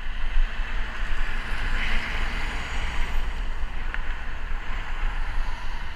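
A bus engine rumbles close by as it passes.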